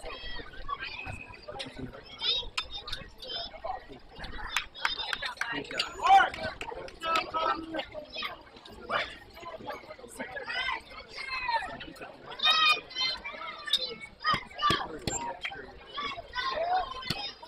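Young players call out and chatter outdoors at a distance.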